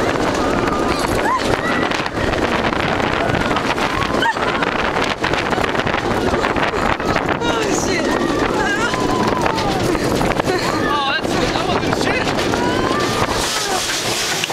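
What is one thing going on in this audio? Wind roars loudly past a rushing roller coaster.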